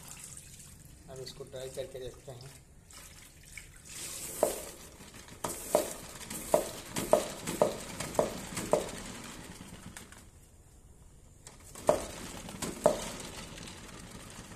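Water splashes and swishes in a bucket.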